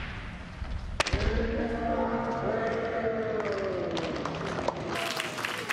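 Fencers let out loud, drawn-out shouts.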